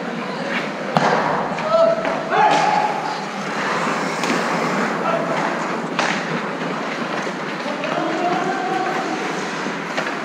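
Young men call out across a large echoing rink.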